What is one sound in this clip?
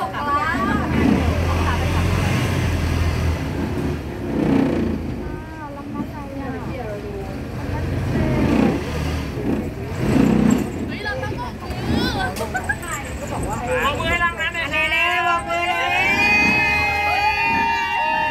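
Women talk and call out cheerfully nearby.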